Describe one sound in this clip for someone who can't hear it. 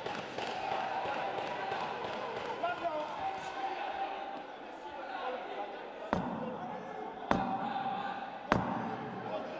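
Boxing gloves thud as punches land.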